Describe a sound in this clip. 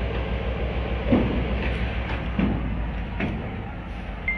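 A metal bar knocks and scrapes against a rail.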